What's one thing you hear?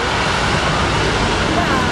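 A bus drives past.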